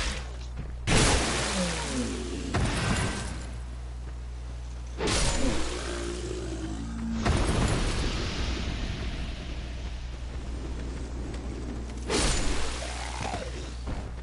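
Swords clash and strike in a fight.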